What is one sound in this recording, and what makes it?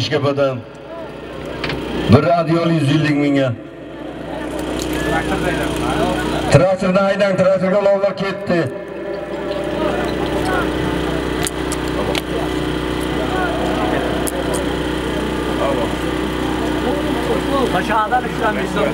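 A crowd of men shouts and calls out in the distance outdoors.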